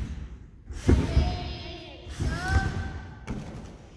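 A gymnast thuds onto a padded mat, echoing in a large hall.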